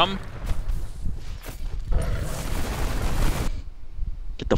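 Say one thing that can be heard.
Magic blasts crackle and roar in a battle.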